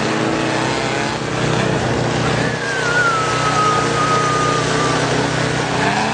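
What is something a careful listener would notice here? A rally car engine roars as the car speeds past on a dirt road.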